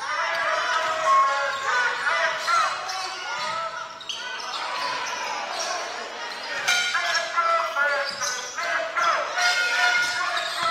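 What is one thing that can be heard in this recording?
Basketball sneakers squeak on a hardwood court in an echoing gym.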